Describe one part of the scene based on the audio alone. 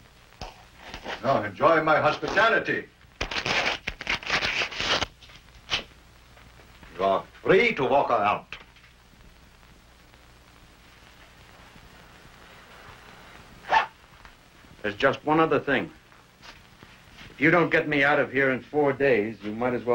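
An older man answers in a low, calm voice.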